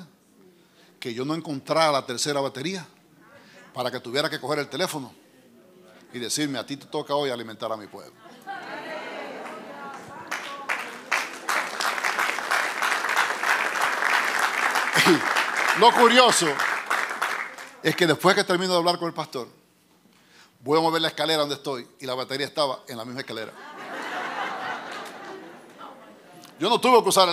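A middle-aged man speaks with animation through a microphone in a large hall.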